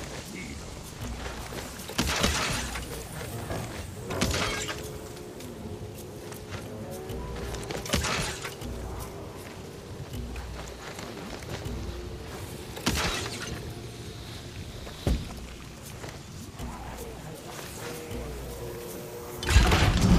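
Footsteps crunch through dry brush.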